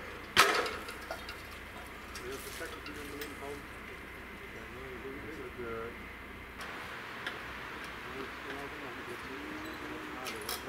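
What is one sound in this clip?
Men talk quietly nearby.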